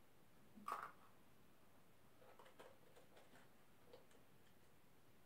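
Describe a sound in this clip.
A small plastic jar clicks and taps as a hand handles it.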